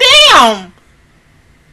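A young woman lets out a loud, high cry close to a microphone.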